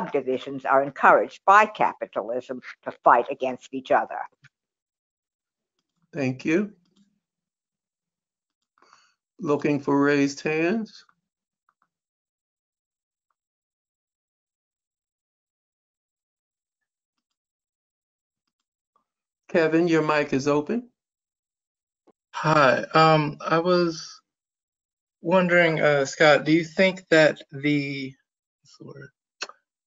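A middle-aged man speaks calmly into a close microphone, in short phrases with long pauses.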